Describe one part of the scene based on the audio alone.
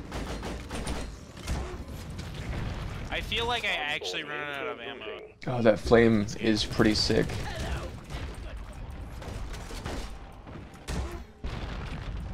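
A rapid-fire gun blasts in bursts.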